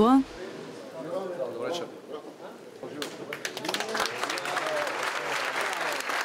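A crowd of men and women chatters nearby.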